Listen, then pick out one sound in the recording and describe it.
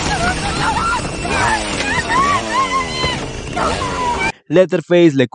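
A woman screams in panic.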